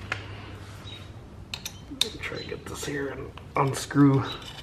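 Fingers click and scrape on a metal bolt.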